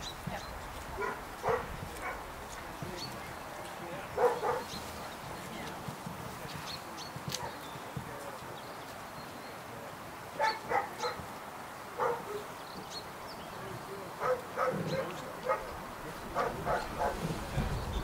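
A man calls out short, sharp commands outdoors.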